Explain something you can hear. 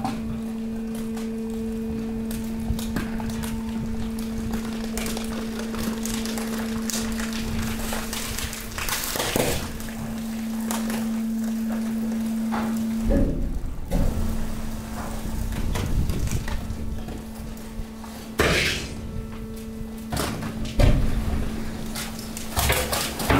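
Rubbish rustles and clatters as a conveyor drags it along.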